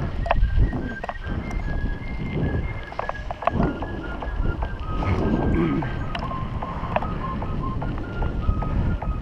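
Wind rumbles loudly across the microphone outdoors.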